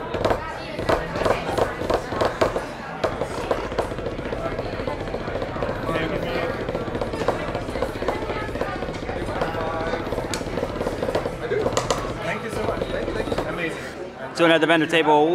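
Drumsticks tap rapidly on a practice pad.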